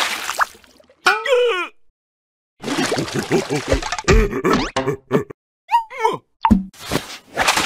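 A small cartoon creature yelps and gasps in a high, squeaky voice.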